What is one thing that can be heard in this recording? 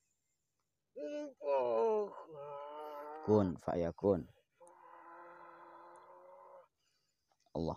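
A woman moans and wails in a strained voice.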